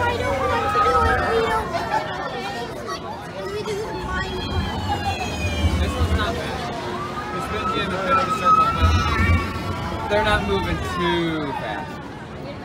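A fairground ride rumbles as it swings back and forth.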